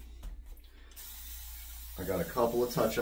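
Foam hisses briefly from a can.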